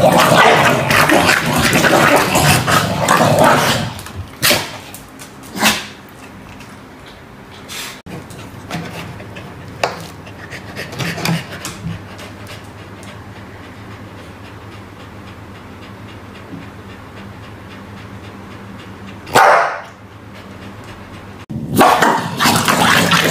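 A dog barks and growls loudly close by.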